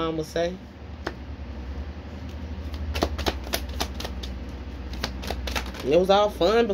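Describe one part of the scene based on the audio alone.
Cards riffle and tap as they are shuffled.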